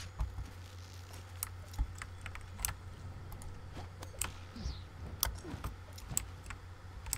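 Sharp clicks and sparkling chimes ring out again and again.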